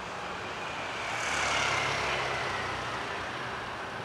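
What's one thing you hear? A motor scooter passes nearby.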